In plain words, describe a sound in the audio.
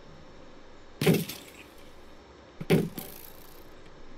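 A sword strikes with a heavy thud.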